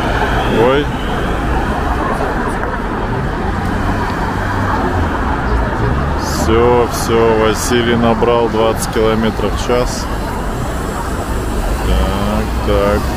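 Traffic hums steadily nearby outdoors.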